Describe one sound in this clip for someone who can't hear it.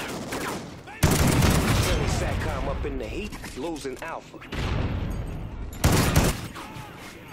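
Gunfire crackles in loud bursts.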